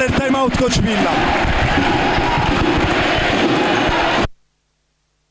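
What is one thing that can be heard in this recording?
A crowd of spectators cheers and claps.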